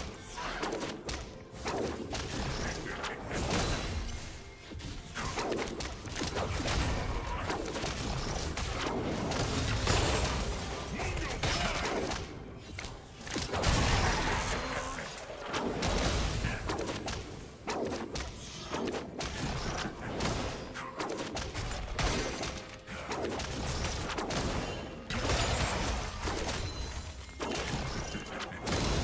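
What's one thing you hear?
Game spells and attacks clash with bursts of magical effects.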